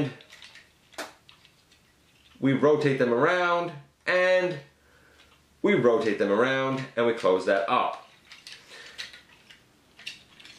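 Plastic toy parts click and rattle as they are turned and folded by hand.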